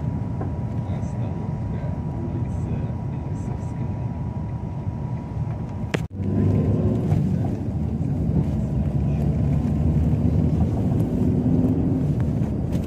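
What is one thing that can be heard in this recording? Road noise rumbles steadily inside a moving car.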